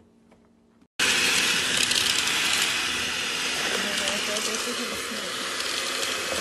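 An electric hand mixer whirs steadily in a metal bowl.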